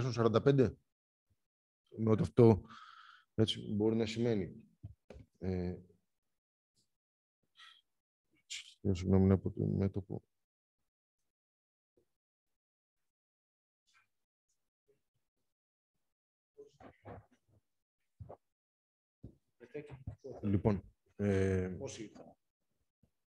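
A man speaks calmly through an online call, with pauses.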